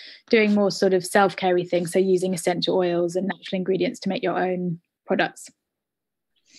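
A woman speaks calmly and close to the microphone, as if on an online call.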